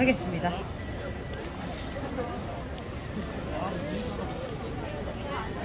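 A crowd of young people chatters outdoors on a busy street.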